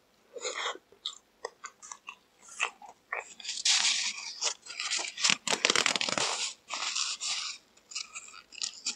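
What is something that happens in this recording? A young man chews crunchy fried chicken close to a microphone.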